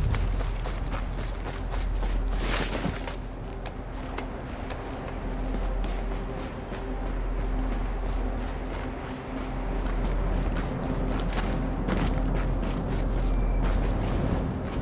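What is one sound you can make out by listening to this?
Footsteps crunch on snow at a quick pace.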